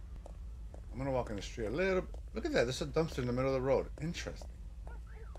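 A middle-aged man talks close to a microphone.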